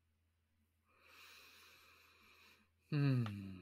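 A second young man laughs over an online call.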